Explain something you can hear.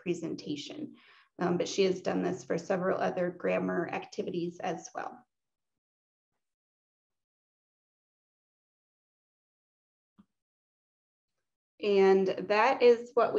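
A woman talks calmly through an online call.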